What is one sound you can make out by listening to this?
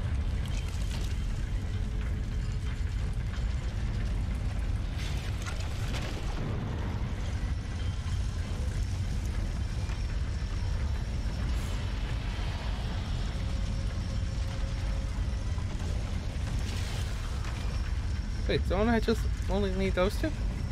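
Heavy stone blocks grind and rumble as they shift.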